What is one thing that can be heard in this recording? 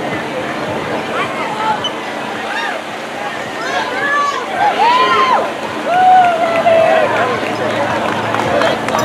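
A crowd of spectators cheers and calls out outdoors.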